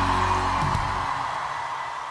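A band's final chord rings out and dies down.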